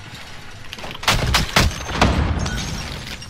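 Gunshots crack loudly in a short burst.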